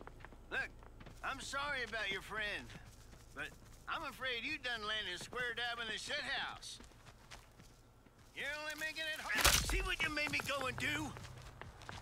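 A young man talks calmly through a microphone.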